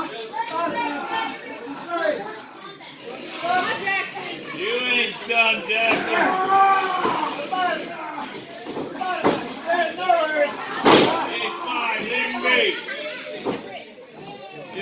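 Spectators in a small echoing hall shout and cheer close by.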